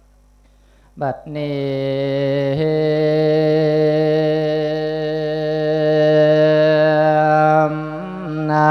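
A man chants in a steady, drawn-out voice through a microphone and loudspeaker.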